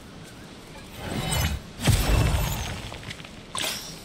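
A magical shimmering whoosh swells and fades.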